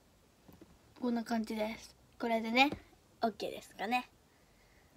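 A girl speaks cheerfully and animatedly close by.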